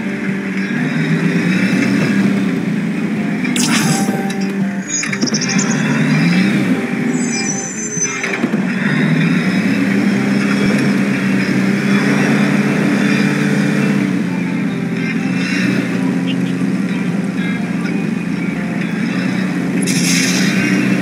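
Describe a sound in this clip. A truck engine rumbles and revs steadily.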